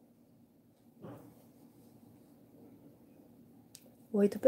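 Cloth rustles softly as hands fold and handle fabric.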